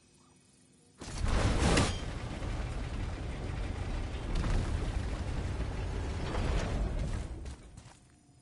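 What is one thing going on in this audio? A heavy wooden crank wheel rumbles and grinds as it turns.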